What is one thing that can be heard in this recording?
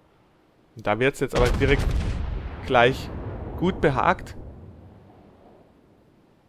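Heavy ship guns fire with deep, rumbling booms.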